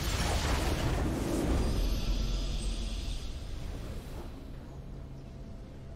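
A triumphant game fanfare swells.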